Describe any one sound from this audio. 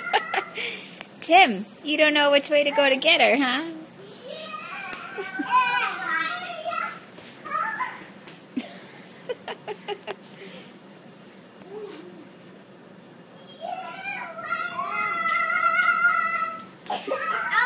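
A baby squeals and babbles nearby.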